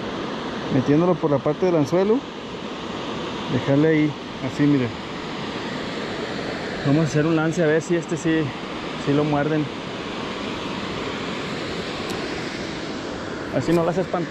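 Water rushes steadily over a weir nearby.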